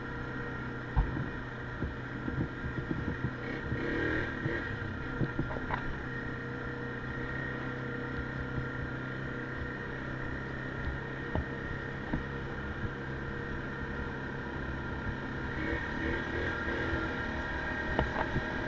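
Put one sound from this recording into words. Knocks and bumps rattle the quad bike over the rough dirt.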